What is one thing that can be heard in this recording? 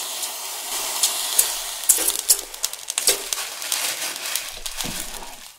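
Squid sizzles and crackles on a hot grill.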